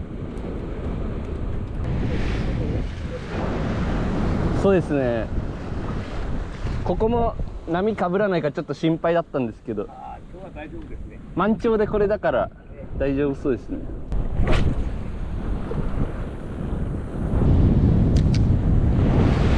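Waves lap against a pier below.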